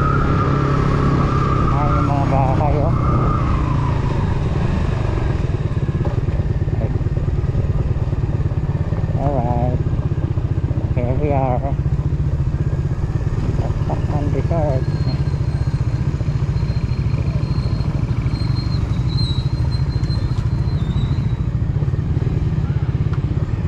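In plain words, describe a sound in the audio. A motorcycle engine hums steadily as the bike rides along.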